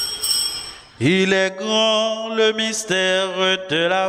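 A man sings through a microphone and loudspeakers.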